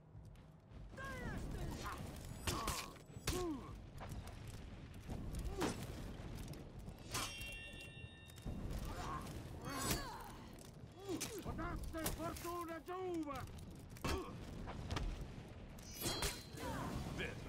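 Warriors grunt and shout as they fight.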